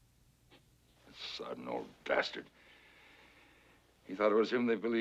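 A middle-aged man speaks in a low, gravelly voice close by.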